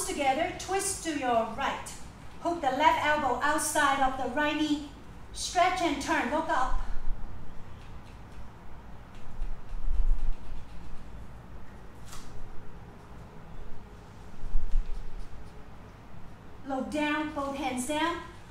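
A woman speaks calmly and clearly, close by, as if giving instructions.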